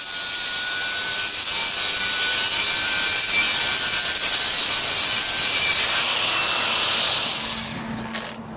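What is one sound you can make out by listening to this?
A power tool whirs loudly as it cuts through a pipe.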